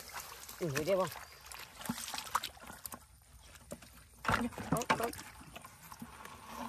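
Hands squelch and splash in shallow muddy water.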